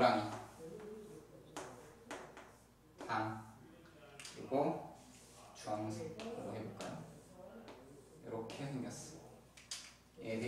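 A young man speaks calmly and steadily, close by.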